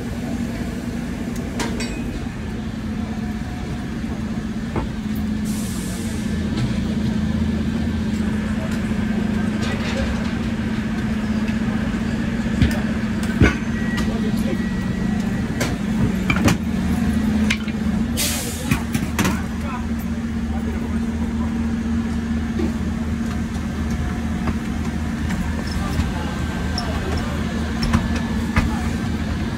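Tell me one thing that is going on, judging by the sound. An engine idles nearby with a steady low rumble.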